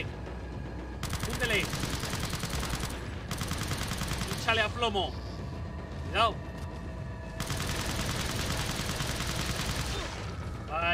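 Gunshots ring out from a pistol.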